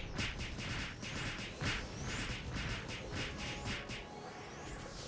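Magic spell effects burst and whoosh in rapid bursts.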